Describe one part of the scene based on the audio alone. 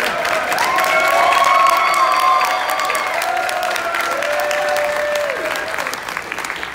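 A male choir sings and holds a final chord in an echoing hall.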